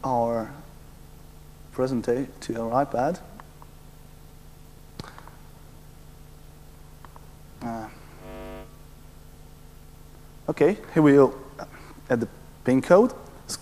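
A young man speaks into a microphone in pauses, his voice ringing through a large hall.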